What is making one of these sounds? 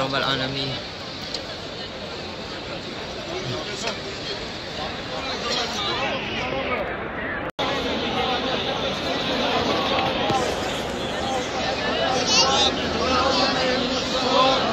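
A large crowd murmurs and chatters all around outdoors.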